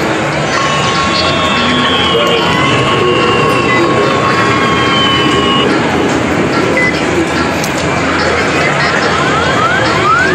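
An arcade machine plays electronic beeps and tones.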